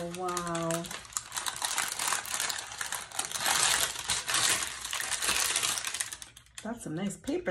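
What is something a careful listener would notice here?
Tissue paper rustles and crinkles close by.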